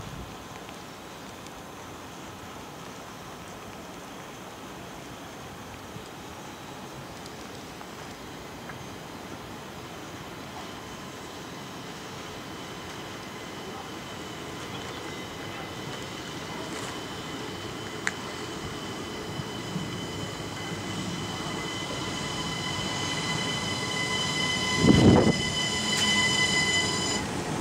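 An electric train approaches, its rumble and hum growing louder.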